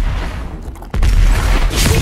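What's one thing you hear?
A heavy gun fires loud shots.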